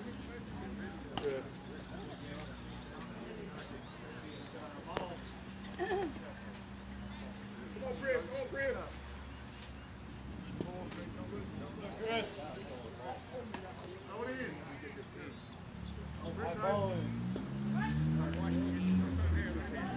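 Men and women chatter and call out outdoors, close by.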